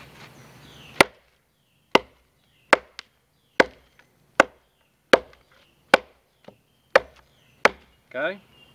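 A blade chops into a wooden log with sharp knocks.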